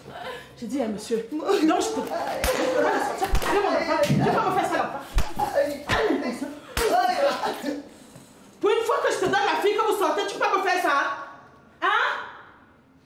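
A young woman cries and wails.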